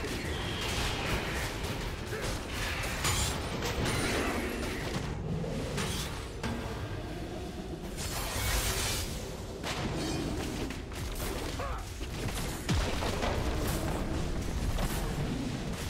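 Magic blasts and clashing weapons crackle in a fight.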